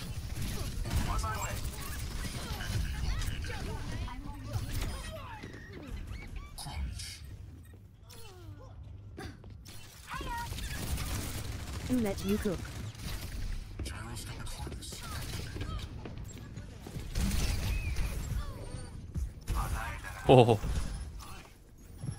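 A ball rolls and rumbles along the ground.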